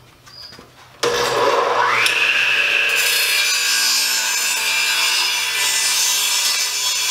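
A power saw motor whirs up to speed and runs with a steady high whine.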